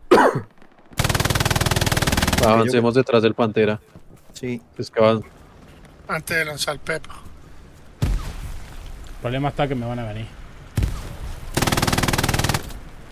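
A machine gun fires long rapid bursts.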